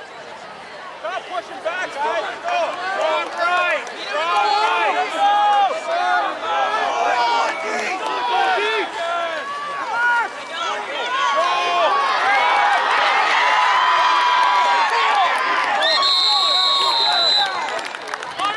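A crowd cheers and shouts from the stands, growing louder as a play runs.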